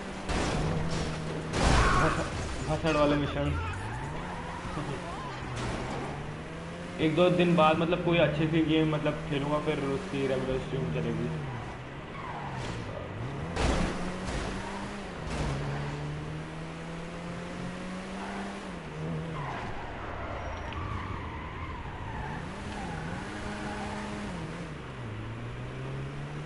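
A car engine hums steadily and revs up and down, again and again.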